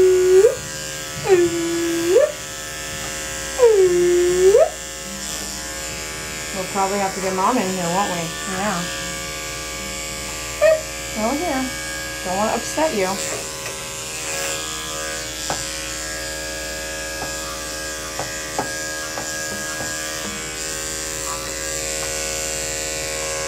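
Electric clippers buzz steadily close by.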